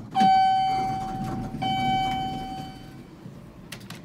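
An elevator chime rings twice.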